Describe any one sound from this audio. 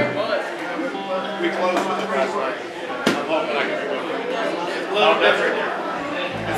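A lap steel guitar plays sliding notes through an amplifier.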